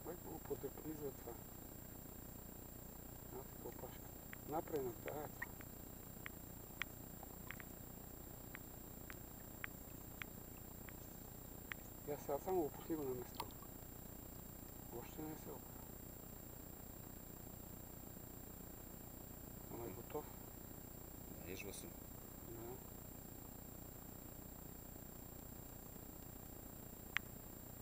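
Water splashes and laps gently around a wading man.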